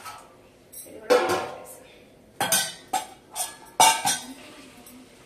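Metal pots and lids clank.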